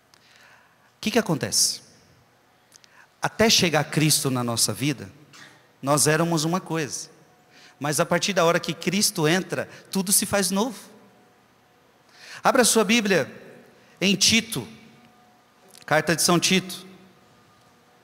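A man speaks with feeling into a microphone, heard through loudspeakers in a large echoing space.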